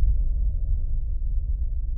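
A car drives along a road with a low, steady rumble.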